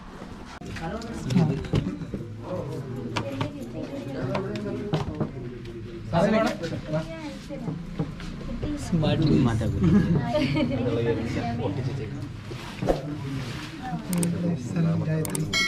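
Adult men and women chat and call out nearby.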